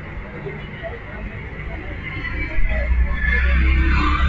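A motorbike engine hums as it rides past in the distance.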